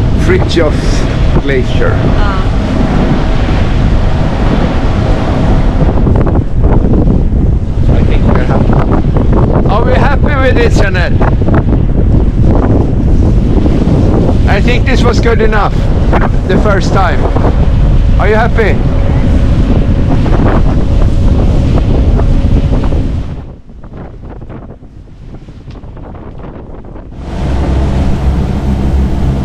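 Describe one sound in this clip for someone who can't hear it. Strong wind roars and buffets against a microphone outdoors.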